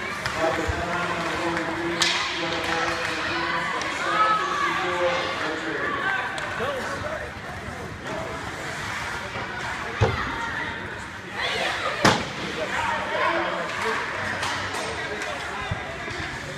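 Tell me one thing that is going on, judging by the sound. A crowd of spectators talks and calls out in the background.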